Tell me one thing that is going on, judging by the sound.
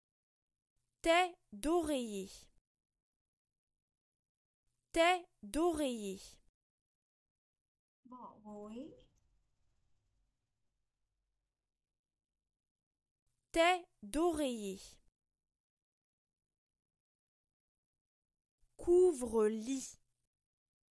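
A young woman speaks short words slowly and clearly, close by.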